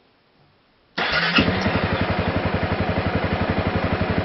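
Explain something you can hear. A motorcycle engine starts and runs with a loud, steady rumble.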